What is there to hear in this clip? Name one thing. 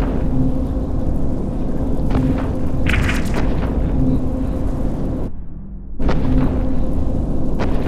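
Heavy guns fire in repeated deep booming bursts.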